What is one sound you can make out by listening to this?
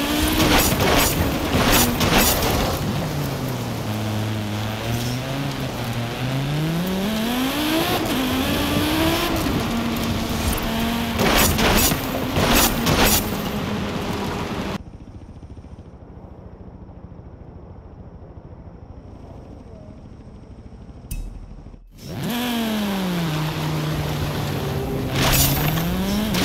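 A rally car engine revs and roars, rising and falling in pitch as the car changes gear.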